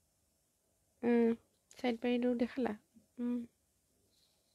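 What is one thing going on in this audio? A woman speaks briefly and expressively, close by.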